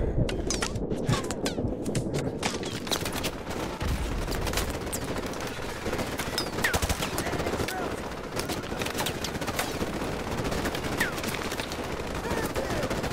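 Gunshots crack and pop repeatedly nearby and in the distance.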